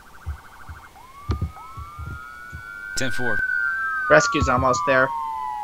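A police siren wails, rising and then slowly falling.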